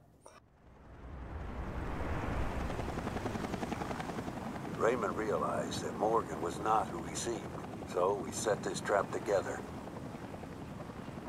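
A helicopter's rotor whirs steadily.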